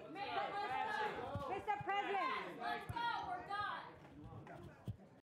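A crowd of people murmurs and chatters in the background.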